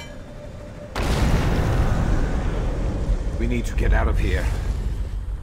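A heavy metal object smashes with a loud, rumbling crash.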